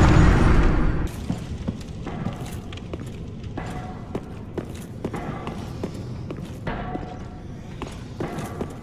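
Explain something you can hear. Armoured footsteps clank steadily on a stone floor.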